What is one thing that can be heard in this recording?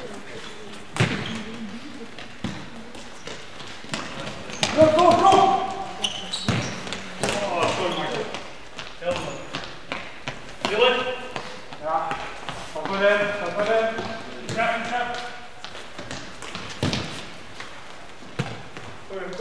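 A football thuds off feet and walls, echoing in a large hall.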